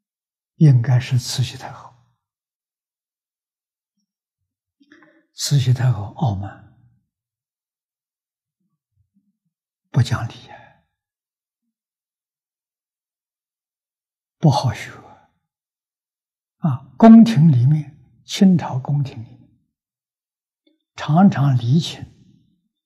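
An elderly man lectures calmly in short phrases with long pauses, close to a microphone.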